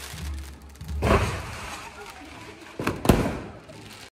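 Firework shells bang loudly overhead.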